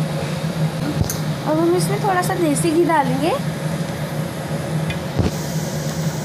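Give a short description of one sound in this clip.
A metal cup clinks against a pan.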